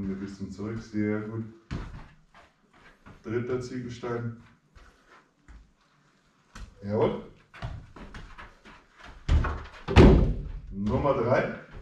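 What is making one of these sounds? A football thuds against the floor and a foot as it is kicked.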